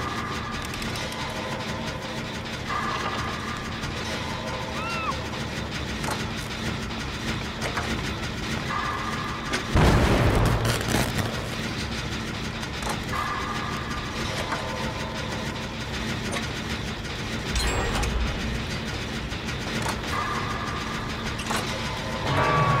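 A motor engine rattles and clanks steadily.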